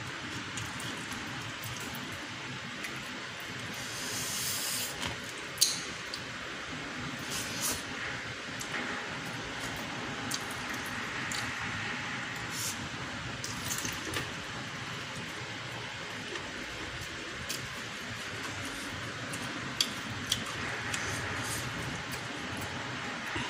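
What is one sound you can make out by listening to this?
Fingers rustle and scrape through rice on a plate.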